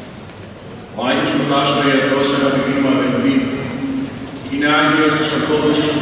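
A man chants loudly and steadily in an echoing hall.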